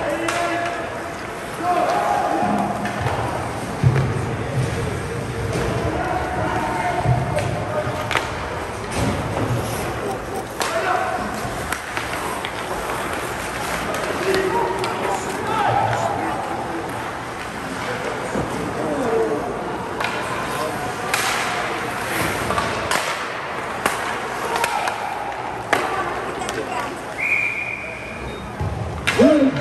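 A crowd of spectators chatters and calls out in a large echoing rink.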